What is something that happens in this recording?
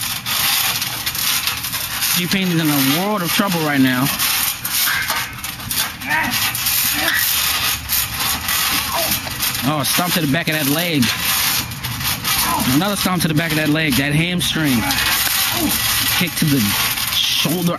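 Bodies thump onto a trampoline mat.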